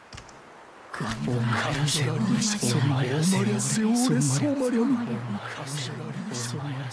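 A crowd of men murmur and shout.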